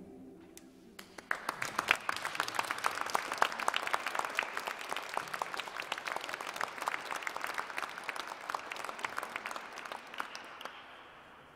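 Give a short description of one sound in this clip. An acoustic guitar strums along.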